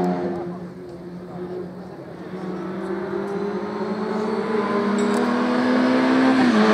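A racing car engine roars as the car speeds closer, growing steadily louder.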